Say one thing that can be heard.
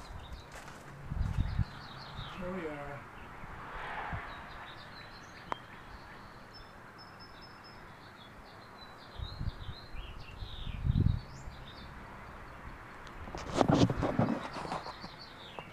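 Wind gusts blow outdoors.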